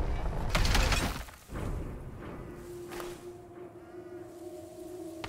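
Tall dry grass rustles and swishes as someone pushes through it.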